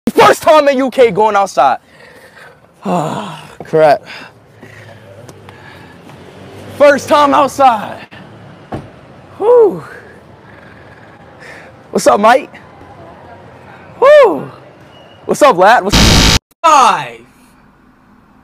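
A young man shouts and laughs excitedly close by.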